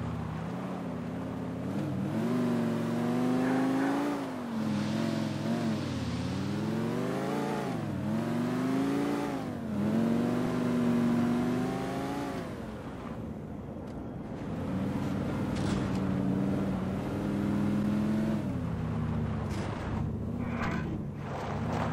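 Tyres skid and slide on loose dirt.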